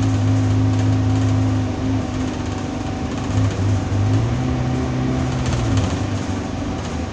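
A bus rattles as it rolls along.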